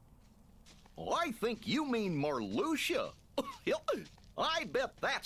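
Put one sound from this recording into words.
A man speaks in a goofy, drawling voice.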